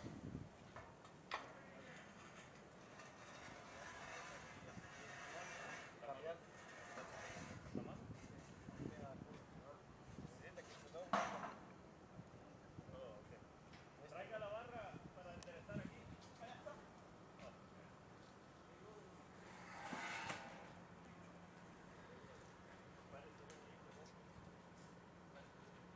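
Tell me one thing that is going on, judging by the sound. Metal fence panels clank and rattle as they are moved.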